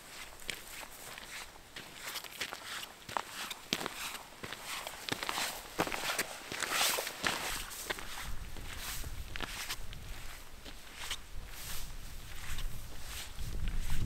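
Boots crunch along a trail through dry grass.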